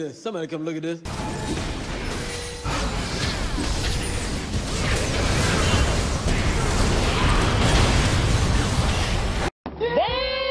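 Game spell effects whoosh, crackle and blast in quick succession.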